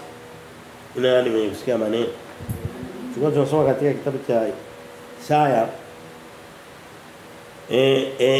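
A man speaks loudly and with animation in short bursts, close by.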